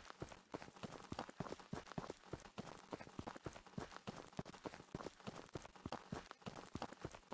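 Quick footsteps thud on dirt as someone runs.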